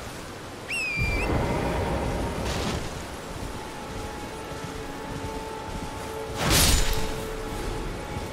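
A horse gallops over grass.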